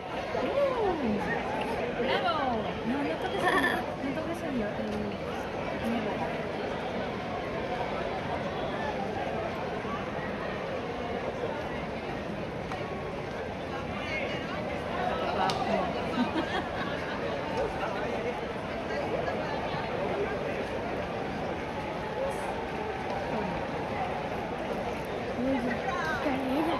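A crowd of onlookers cheers and whistles throughout.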